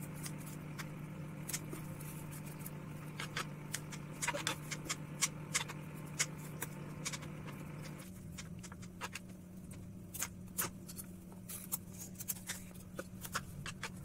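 A plastic bottle crinkles and clicks as it is handled.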